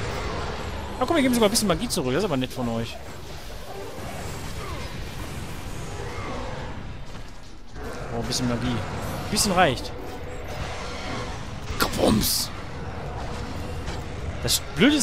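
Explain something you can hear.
Creatures roar and growl.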